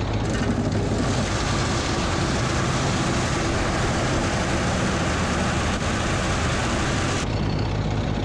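Straw rustles and crackles loudly as it is fed through the machine.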